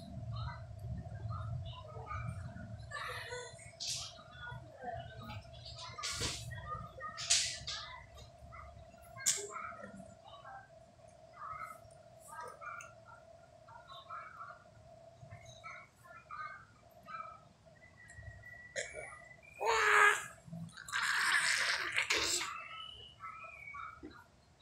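A baby munches and smacks on a biscuit close by.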